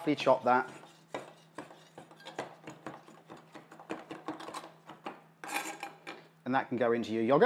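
A knife chops herbs on a wooden board with quick, light taps.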